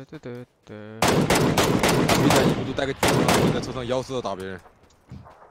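Rifle shots crack loudly in quick succession.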